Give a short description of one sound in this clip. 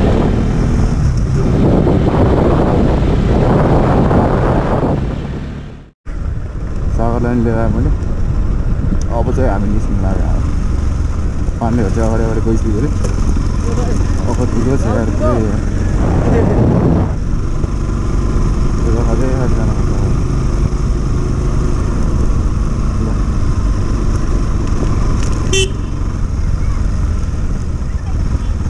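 A motorcycle engine hums and revs up and down while riding.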